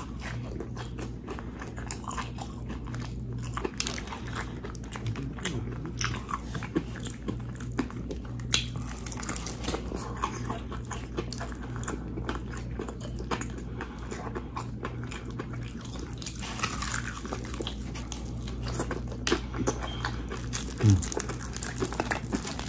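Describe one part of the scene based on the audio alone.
Crispy fried chicken crackles and crunches as hands tear it apart close up.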